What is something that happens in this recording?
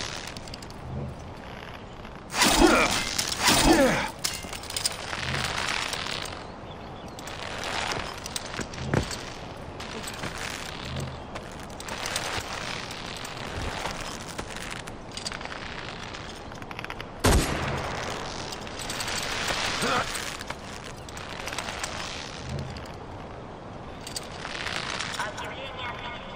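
Hands grip and pull on a rope while climbing.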